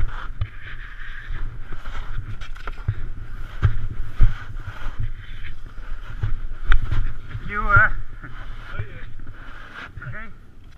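Skis scrape and hiss across snow.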